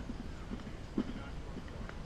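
A bat cracks against a ball in the distance.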